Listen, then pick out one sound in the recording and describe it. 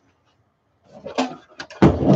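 A metal box knocks as it is picked up.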